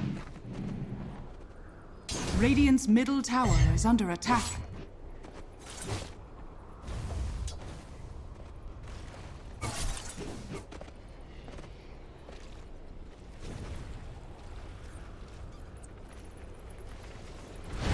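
Magical spell effects whoosh and crackle in bursts.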